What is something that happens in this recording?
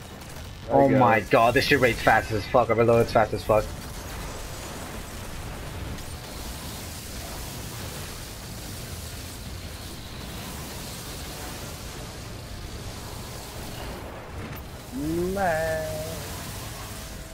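Energy weapons fire and crackle in a fierce battle.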